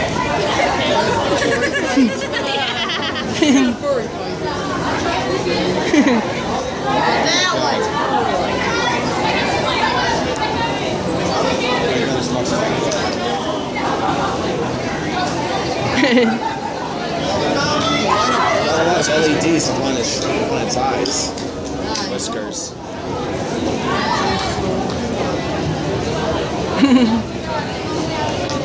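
Young men and women talk and laugh close by.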